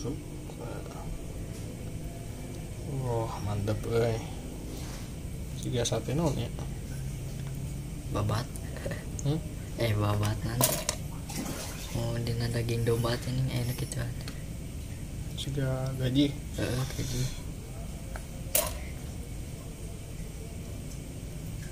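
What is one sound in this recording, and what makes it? Pieces of food are pushed onto wooden skewers with soft crunching.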